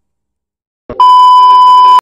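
A loud, steady test tone beeps.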